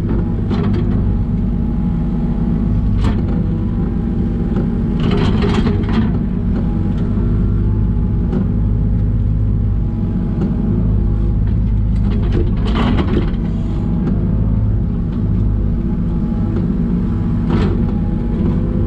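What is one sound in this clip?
A metal bucket scrapes and knocks against soil and stones.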